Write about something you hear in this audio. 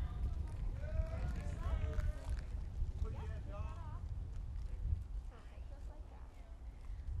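A woman announces calmly through a loudspeaker outdoors.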